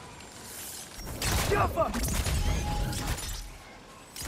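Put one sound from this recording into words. A magical blast crackles and whooshes.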